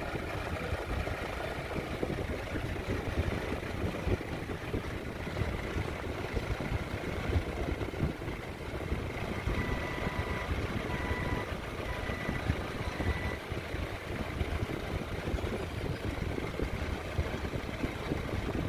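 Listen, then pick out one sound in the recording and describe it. An electric fan whirs and blows air close by.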